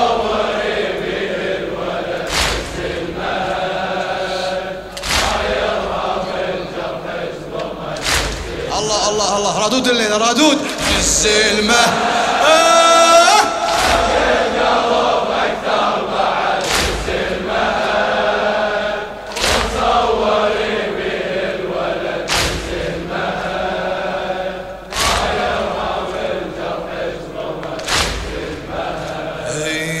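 A man chants mournfully through a microphone.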